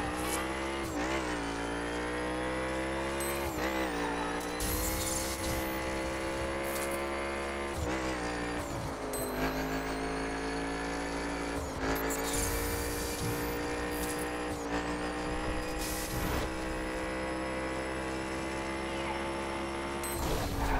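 A racing car engine roars at high revs, dropping briefly at each gear change.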